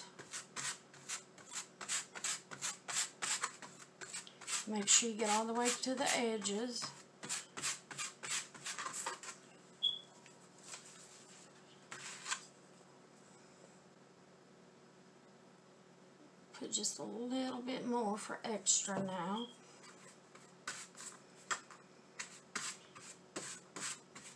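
A paintbrush swishes in quick strokes across paper.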